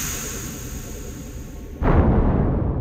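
A magical shimmering hum rings as a bright light glows.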